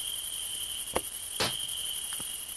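A wooden board drops and knocks on the floor.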